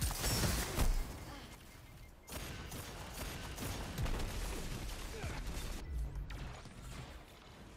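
Gunfire cracks and bursts in a video game.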